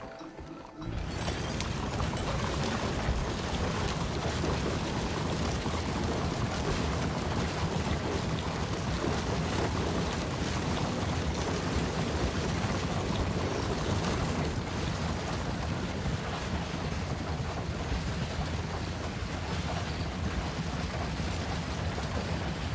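A horse-drawn wagon rattles along a rough dirt road.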